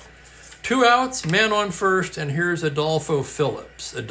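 Paper sheets rustle and slide.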